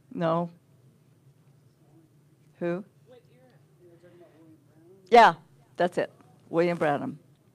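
An older woman speaks into a microphone in short, emphatic bursts, heard through a loudspeaker in a room with a slight echo.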